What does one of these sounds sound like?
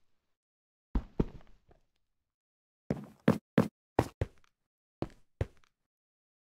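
Footsteps thump on wooden steps.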